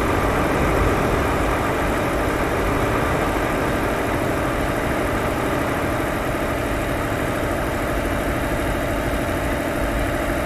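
A truck engine hums steadily as it drives along.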